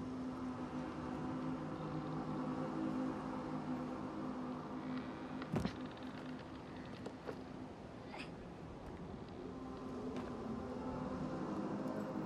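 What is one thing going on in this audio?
Small footsteps tap on wooden boards.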